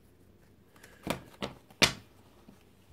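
Cards click and tap as they are handled.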